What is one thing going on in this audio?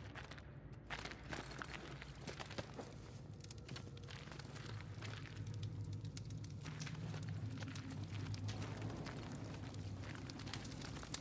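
A low rumble drones steadily in an echoing tunnel.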